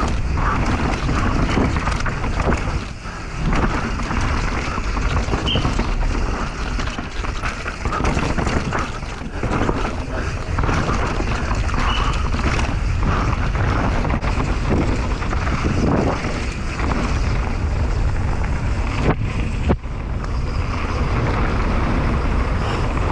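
Bicycle tyres rattle and crunch over rough dirt and rocks.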